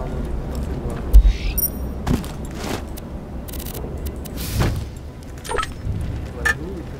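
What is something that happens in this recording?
Short electronic blips sound as a menu opens and closes.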